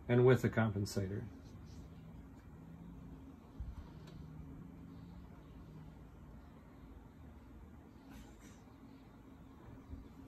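Focus knobs on a microscope creak and click softly as they are turned.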